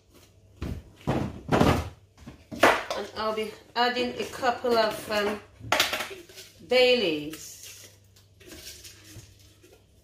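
A plastic spice jar rattles as a woman shakes it.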